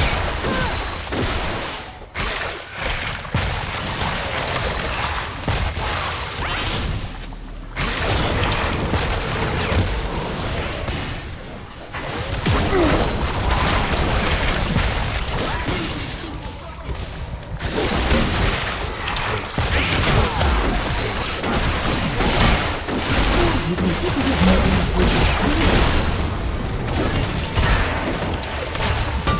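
Game spell effects whoosh, crackle and clash during a fight.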